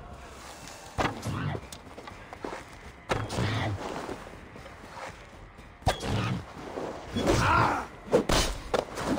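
An axe strikes with heavy thuds.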